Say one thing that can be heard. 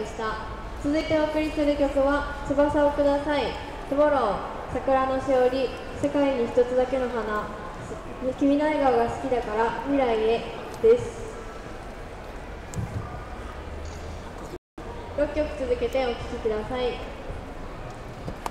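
A group of young girls sings together outdoors.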